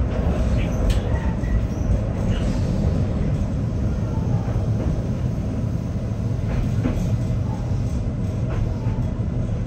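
Train wheels squeal and screech on the rails.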